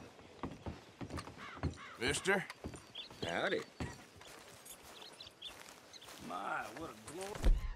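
Footsteps thud on wooden boards and then on dirt.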